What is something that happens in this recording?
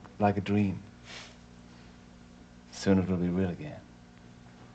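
A man speaks softly and warmly nearby.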